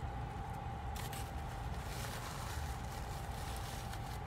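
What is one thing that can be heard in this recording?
Paper crinkles close by.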